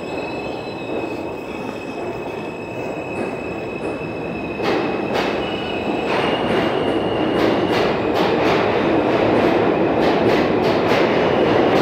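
Train wheels clatter and squeal on the rails.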